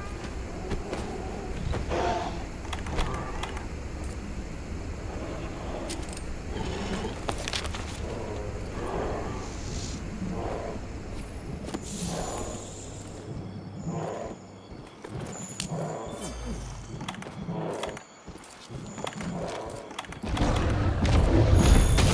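Heavy footsteps of a large creature thud along at a steady running pace.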